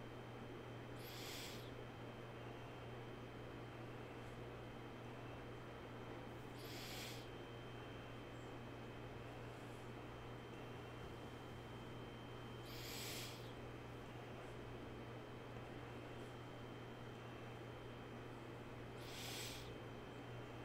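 A man breathes out slowly and deeply every few seconds, close to a microphone.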